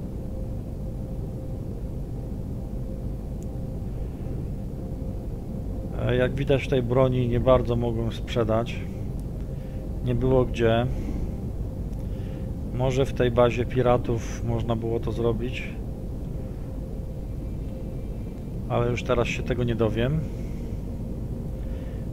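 A low spaceship engine hums steadily.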